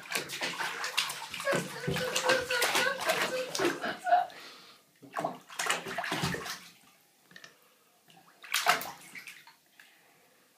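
A baby splashes water with its hands.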